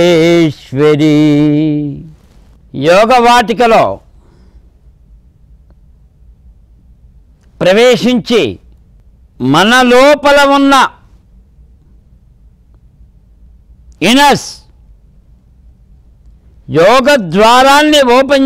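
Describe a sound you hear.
An elderly man chants slowly in a deep voice through a microphone, with long pauses.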